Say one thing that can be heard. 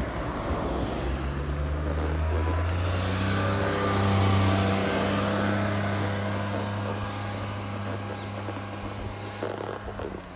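A van's engine hums as it drives past close by and pulls away.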